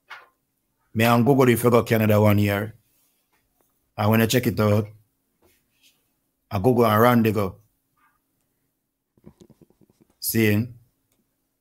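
A young man speaks calmly and close into a microphone, in short phrases with pauses.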